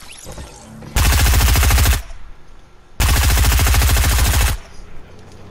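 A rifle fires loud shots in quick bursts.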